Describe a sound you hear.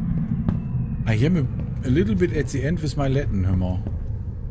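A man talks into a close microphone, with animation.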